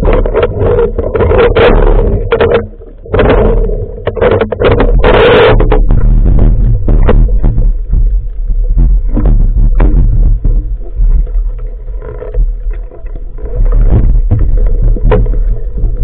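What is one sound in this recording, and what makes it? Air bubbles from a diver's breathing gurgle and rush in loud bursts underwater.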